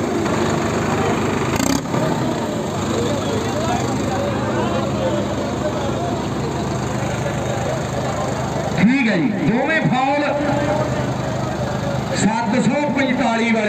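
A large crowd chatters outdoors in the distance.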